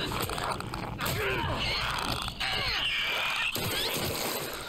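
Heavy boots stomp down on flesh with wet thuds.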